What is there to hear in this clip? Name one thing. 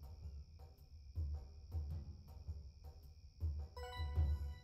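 Soft clicks tap quickly.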